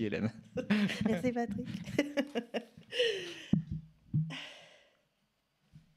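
A woman laughs loudly into a close microphone.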